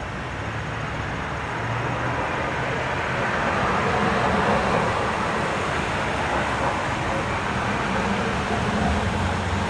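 A car drives past on the street, growing louder.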